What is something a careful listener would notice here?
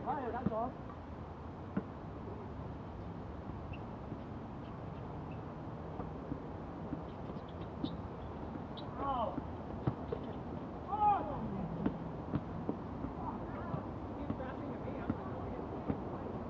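Shoes squeak on the court.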